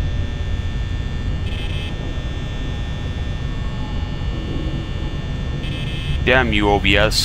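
A desk fan hums steadily.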